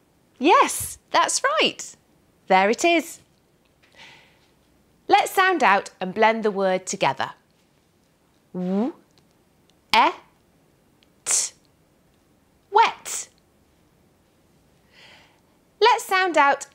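A young woman speaks clearly and slowly, close by, with short pauses.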